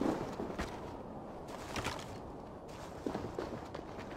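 A heavy crate thuds onto the ground.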